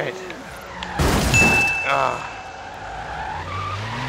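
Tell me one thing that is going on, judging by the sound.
A car crashes into another car with a loud bang.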